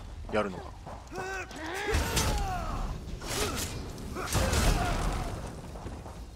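Blows and spell blasts clash during a fight.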